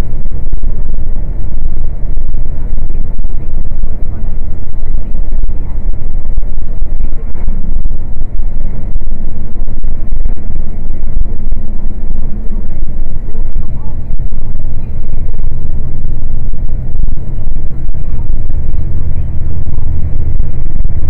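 A vehicle's engine rumbles steadily from inside the cab.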